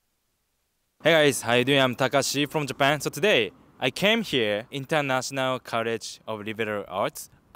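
A young man talks with animation into a handheld microphone, close by.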